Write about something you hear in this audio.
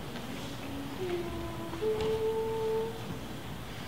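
A single voice hums a few rising pitch notes.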